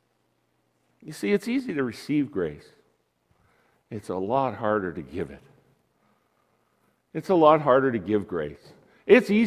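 An older man speaks calmly through a microphone in a large room, pausing between phrases.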